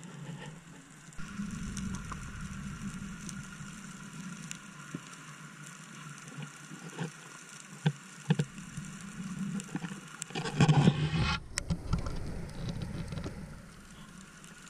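A muffled underwater hush rumbles and gurgles, with clicks and pops now and then.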